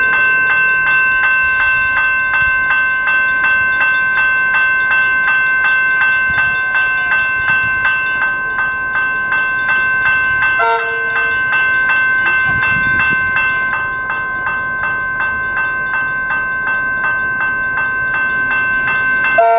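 A train rumbles slowly along the tracks.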